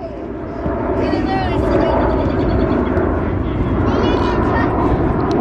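A young child squeals and shouts excitedly nearby.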